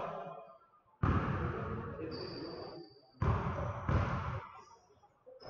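A basketball bounces with hollow thuds on a wooden floor.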